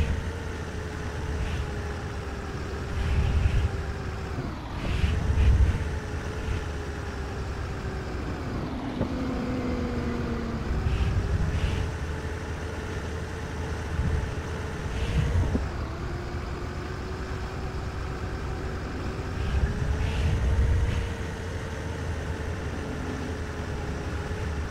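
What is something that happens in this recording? A bus engine hums steadily as it climbs a winding road.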